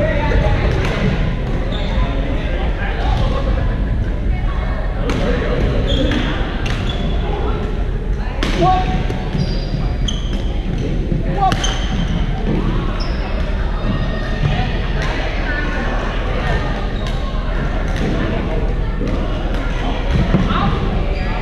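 Rackets strike shuttlecocks with sharp pops in a large echoing hall.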